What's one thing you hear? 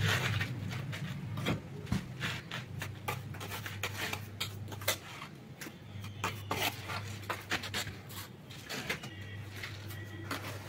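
A trowel scrapes and taps against a cement wall.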